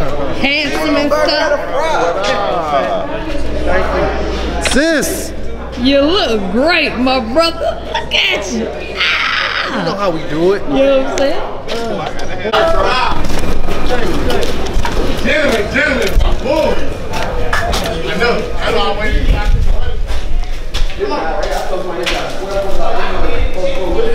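Several men talk and laugh close by.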